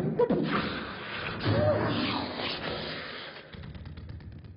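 A crowd cheers and shouts loudly in a large hall.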